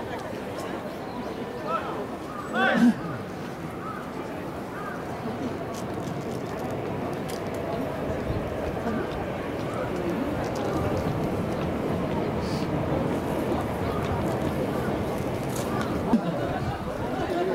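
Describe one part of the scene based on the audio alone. A crowd of young men chatters outdoors.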